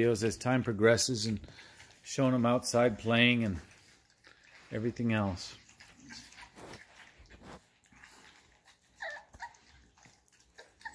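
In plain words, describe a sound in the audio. Puppies lap and slurp food from metal bowls.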